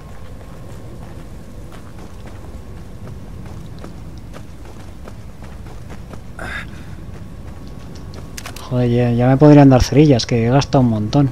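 Footsteps run through grass and undergrowth.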